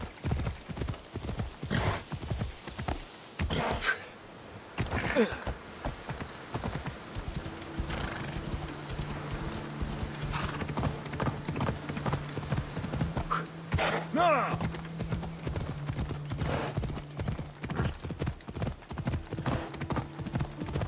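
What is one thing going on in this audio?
A horse's hooves thud quickly on the ground.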